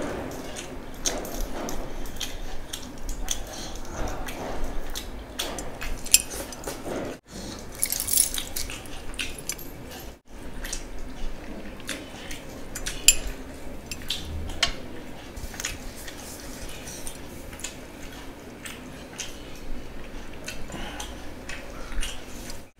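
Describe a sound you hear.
A man chews food loudly and wetly, close to the microphone.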